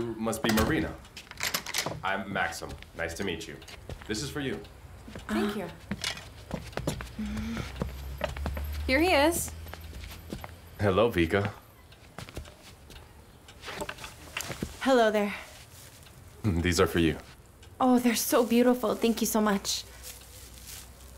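A young woman speaks in a friendly way nearby.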